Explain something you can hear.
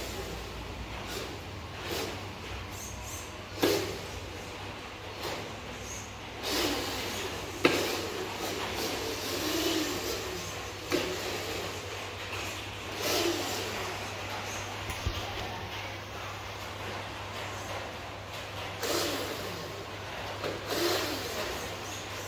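Plastic wheels roll and rattle on tiles.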